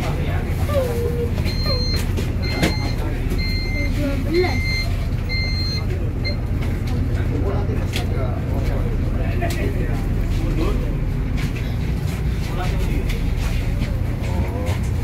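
Men chatter nearby.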